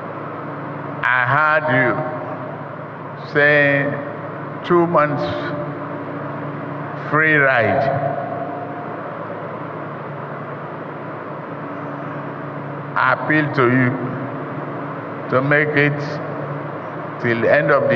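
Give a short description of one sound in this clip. An elderly man speaks slowly and firmly through a microphone and loudspeakers, with pauses between phrases.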